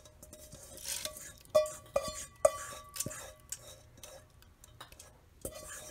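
Liquid pours and splashes into a metal bowl.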